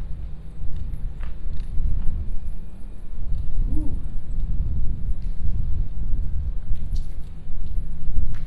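Wind rumbles heavily outdoors on open water.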